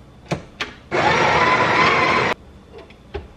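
A coffee grinder whirs loudly.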